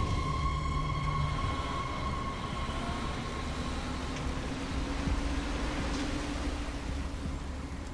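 A heavy truck engine rumbles as it drives past.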